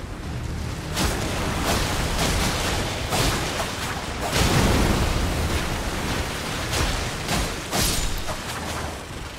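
Swords clash and strike with loud impacts.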